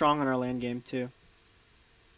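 A young man speaks briefly close to a microphone.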